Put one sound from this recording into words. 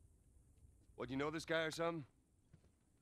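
A man asks a question with surprise.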